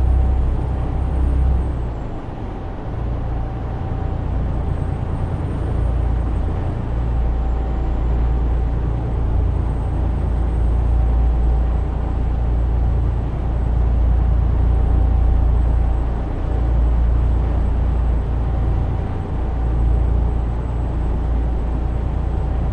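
Tyres roar on the road surface.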